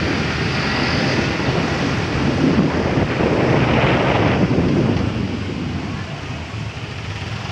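A motor scooter engine hums steadily close by.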